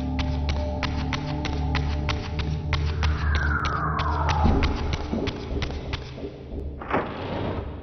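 Footsteps tap quickly and evenly on a hard floor.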